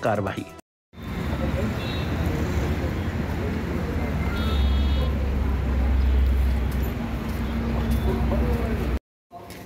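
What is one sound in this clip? Several people's footsteps shuffle and tread on a hard floor.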